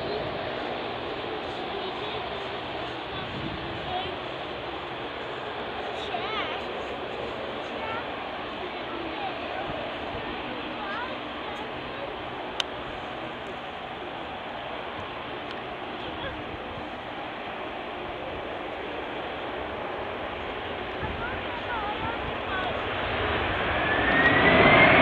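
A jet airliner's engines roar steadily as it approaches.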